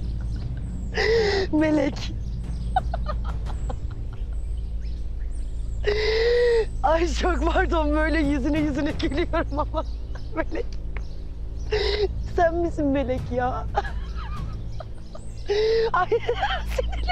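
A young woman laughs loudly and gleefully nearby.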